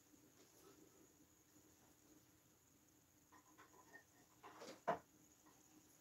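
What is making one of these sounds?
Wooden objects clack softly as a man handles them.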